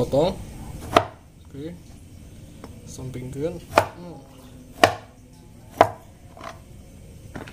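A heavy knife chops through something soft and thuds against a wooden board.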